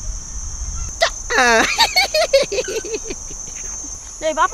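A man laughs heartily up close.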